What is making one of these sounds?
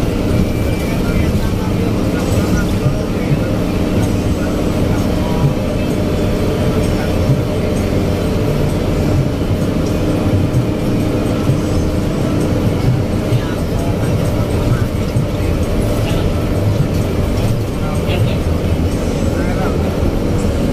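A diesel bus engine roars under load, heard from inside the cab.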